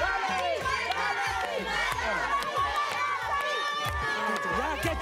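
A crowd of young men and women cheers and shouts excitedly.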